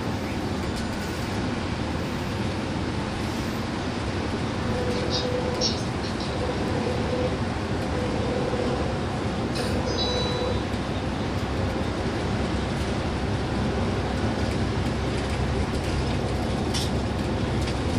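A bus engine hums steadily as the bus drives along a highway.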